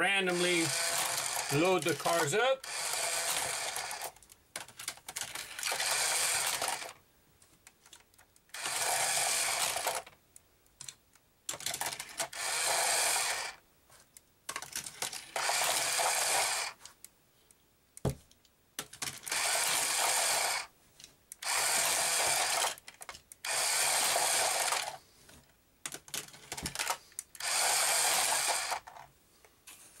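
Small toy cars rattle and whir down a plastic spiral track in repeated bursts.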